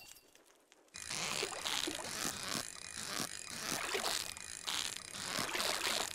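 A fishing reel whirs and clicks steadily.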